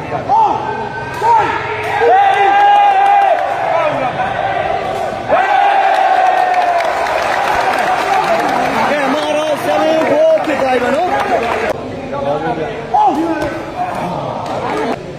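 A crowd of spectators cheers and shouts loudly nearby.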